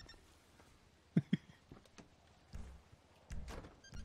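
A car door opens and shuts with a click.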